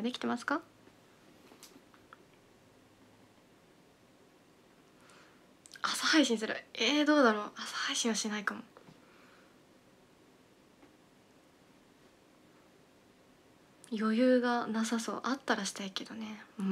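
A young woman speaks softly and casually into a nearby microphone, in short bursts with pauses.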